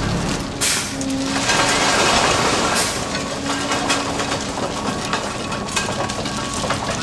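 Metal tamping tools clank and grind into track ballast.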